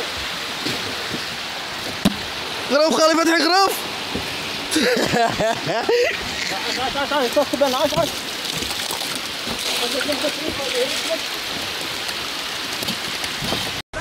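Water splashes and churns against a boat.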